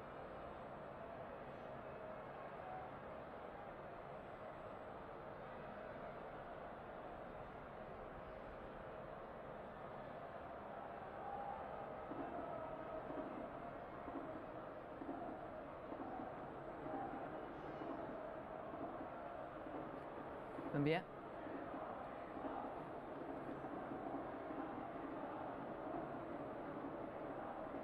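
A large crowd murmurs steadily in the distance.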